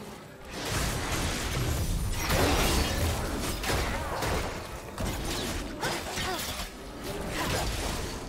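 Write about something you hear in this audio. Magic blasts and weapon hits burst and crackle in a video game battle.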